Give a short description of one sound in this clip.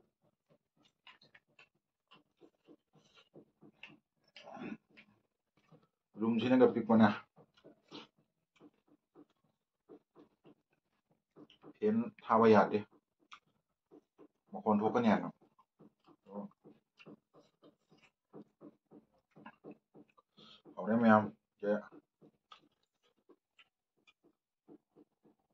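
A man chews food noisily close by.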